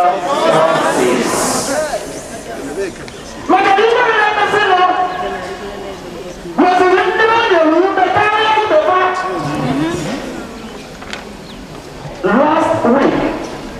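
A large crowd sings together outdoors in long phrases.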